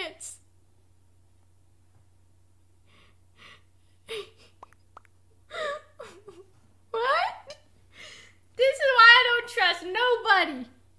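A girl speaks in bursts with animation, close to a microphone.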